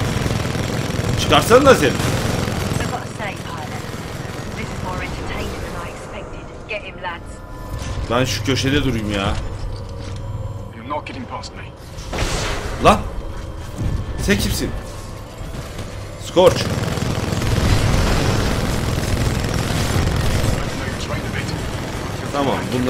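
Heavy gunfire rattles and booms from a game.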